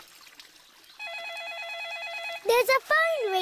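A phone rings with a warbling tone.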